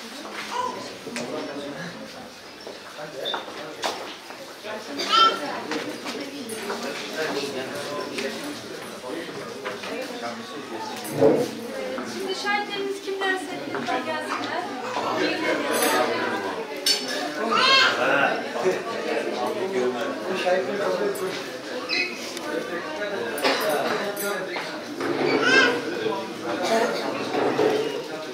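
A woman speaks clearly into a microphone in a room with light echo.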